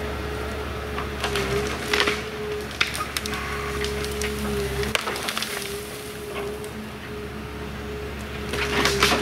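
Spruce branches crackle and snap as a machine's grapple drags a tree.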